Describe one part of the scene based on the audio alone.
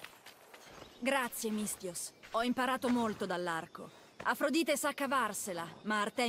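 A young woman speaks warmly and close.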